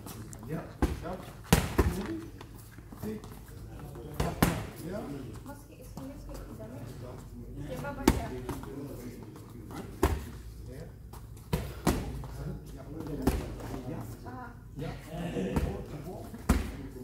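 Boxing gloves thump against pads and gloves in sharp bursts.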